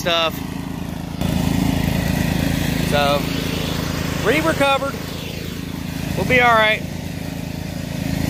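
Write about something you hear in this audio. A lawn mower engine hums steadily close by.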